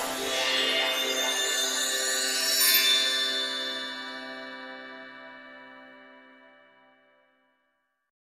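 A sparkling magical chime rings out and slowly fades.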